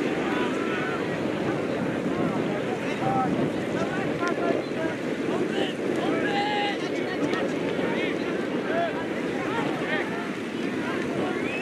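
Wind blows across the open air.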